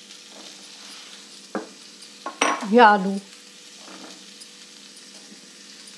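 Chopped vegetables drop into a pan.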